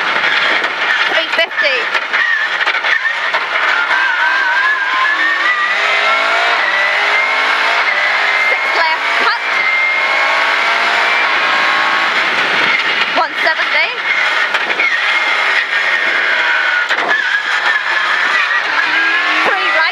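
A rally car engine roars at full throttle, heard from inside the cabin.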